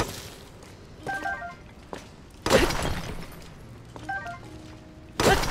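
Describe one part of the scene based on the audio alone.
A short bright chime sounds as an item is picked up.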